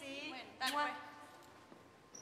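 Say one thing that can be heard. A teenage girl speaks briefly nearby.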